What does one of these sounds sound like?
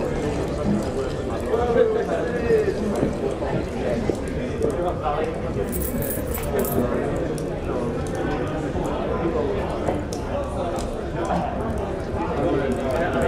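A fire crackles in a hearth.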